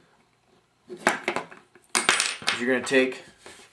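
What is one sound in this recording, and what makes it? Plastic parts click and tap as hands fit them together.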